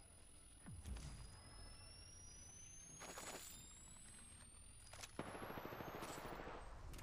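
A healing device charges up with a steadily rising whine.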